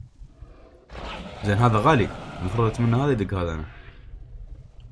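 A large beast growls loudly up close.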